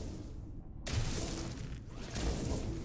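A laser gun fires in a loud crackling burst.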